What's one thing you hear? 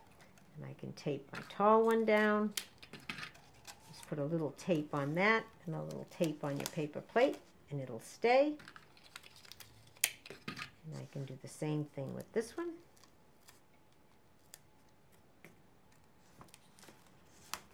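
Cardboard tubes knock and rustle softly as hands move them around.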